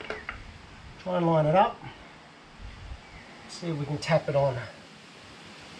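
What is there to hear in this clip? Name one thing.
A man speaks briefly and calmly nearby.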